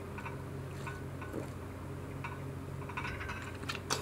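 A young woman drinks from a bottle, gulping.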